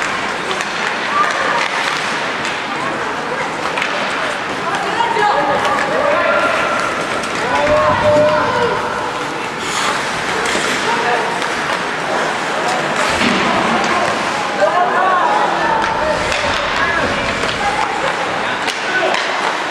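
Hockey sticks knock against a puck.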